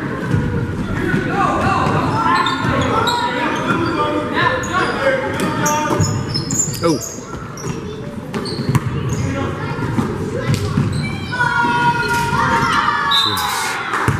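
Young players and spectators shout and call out in a large echoing gym.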